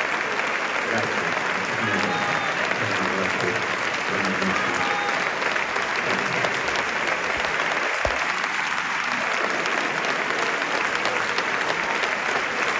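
An elderly man speaks into a microphone, heard through loudspeakers in a large hall.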